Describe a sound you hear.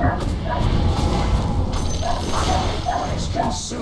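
Game fight sounds clash and thud in quick bursts.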